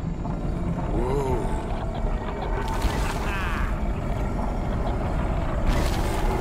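Heavy stone blocks rumble and crash as a floor collapses.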